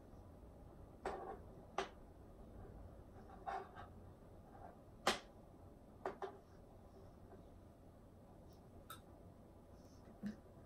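A spoon clinks and scrapes against a bowl.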